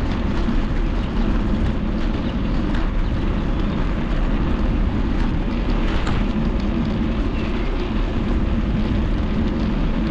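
Bicycle tyres roll steadily along a paved path.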